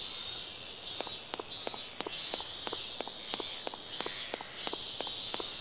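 Footsteps patter quickly and evenly on pavement.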